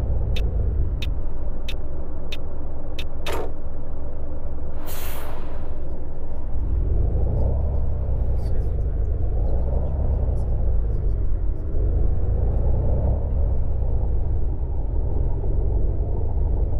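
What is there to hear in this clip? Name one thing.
A bus engine drones steadily, its revs rising and falling as it pulls away.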